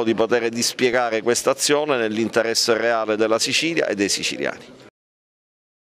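An older man speaks steadily into a microphone.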